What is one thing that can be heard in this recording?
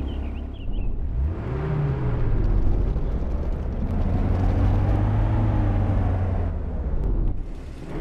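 A vehicle engine starts and revs up and down as it drives off.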